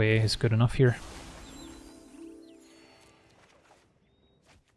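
A shimmering magical chime rings out and fades.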